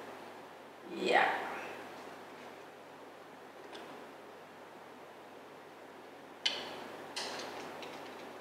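Thin metal panels clink softly as they are fitted together.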